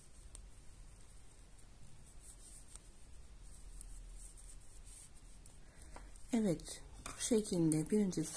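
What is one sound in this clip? Knitting needles click and tap softly.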